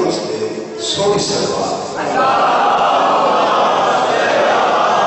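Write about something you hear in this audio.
A man speaks loudly and passionately into a microphone.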